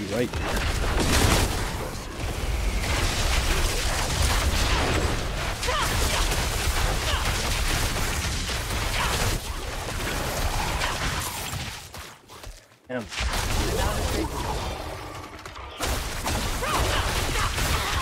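Magic spells crackle and blast amid a fierce fight.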